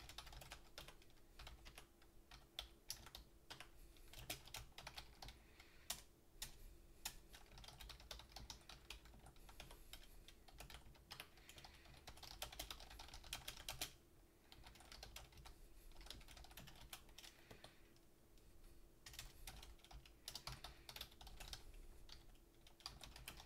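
Keys clack rapidly on a computer keyboard.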